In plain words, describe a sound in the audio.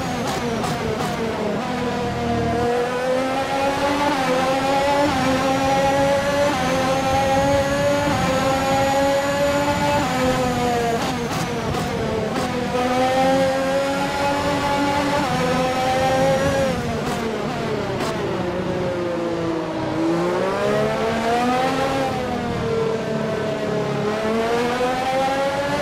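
A racing car engine screams at high revs, rising and dropping as gears shift.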